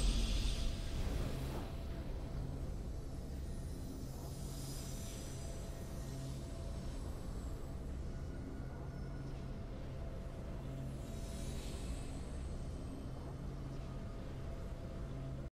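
Soft game victory music plays steadily.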